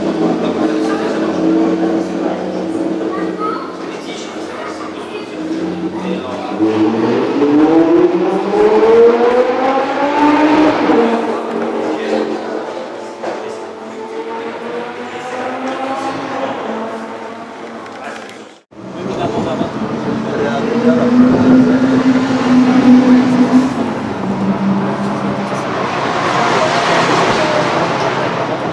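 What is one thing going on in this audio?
A V12 sports car engine idles.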